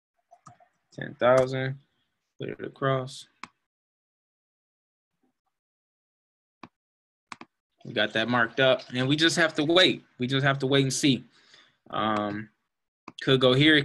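A young man talks calmly and close to a microphone, in short bursts with pauses.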